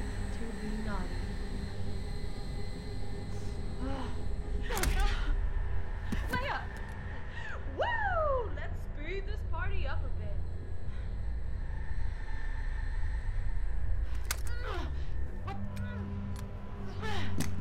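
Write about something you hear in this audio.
A young woman shouts threateningly close by.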